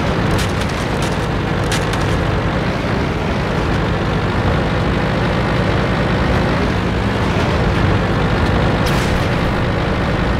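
A tank engine rumbles as the tank drives.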